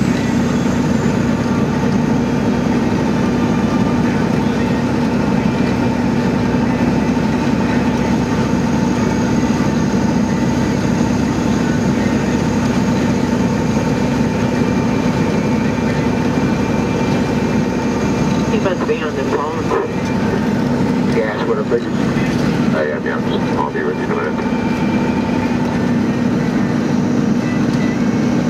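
A vehicle engine hums steadily while driving on a highway.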